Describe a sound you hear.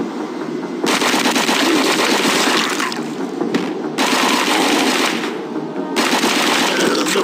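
A rifle fires in rapid bursts of automatic shots.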